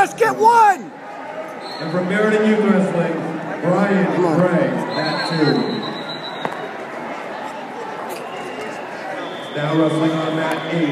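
Spectators shout and cheer loudly nearby.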